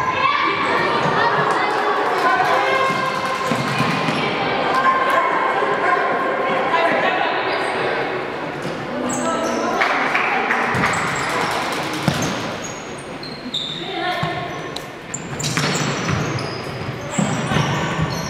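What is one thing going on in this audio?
A futsal ball thuds off a player's foot.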